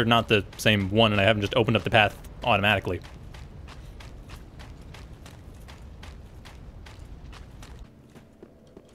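Footsteps crunch quickly across frozen ground.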